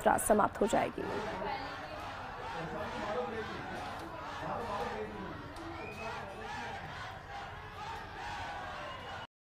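A large crowd cheers and chatters excitedly.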